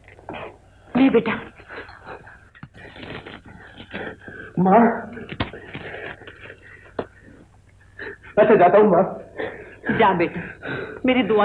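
A man speaks urgently close by.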